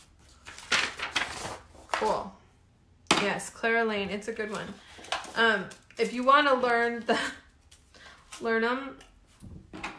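Paper rustles as sheets are handled and moved.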